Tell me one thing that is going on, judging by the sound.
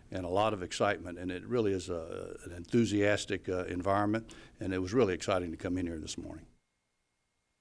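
An older man speaks warmly into a microphone, close by.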